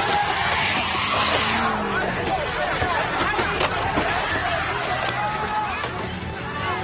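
A crowd of young people shouts and screams in panic nearby.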